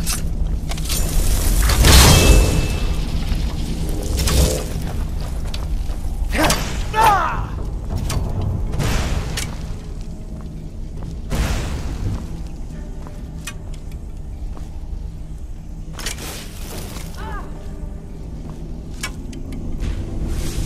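A magic spell hums and crackles in a hand.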